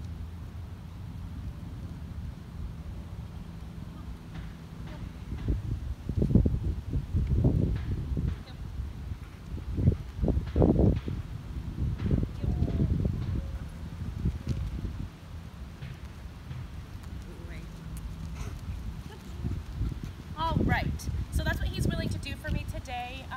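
Wind blows and rumbles against the microphone outdoors.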